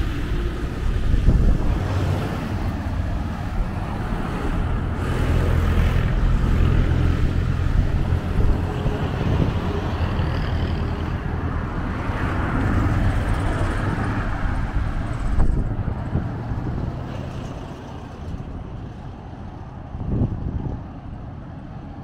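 Wind blows into the microphone outdoors.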